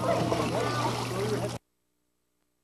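A young child calls out nearby.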